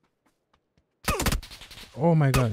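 Gunshots ring out in a quick burst.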